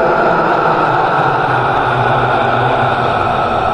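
A man laughs loudly and wildly.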